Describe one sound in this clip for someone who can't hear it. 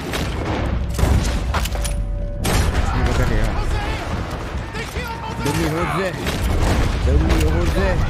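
Wood and glass splinter under gunfire.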